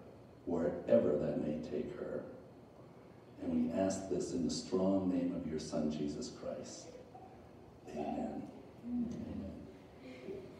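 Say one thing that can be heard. A man speaks calmly nearby in a hall with a slight echo.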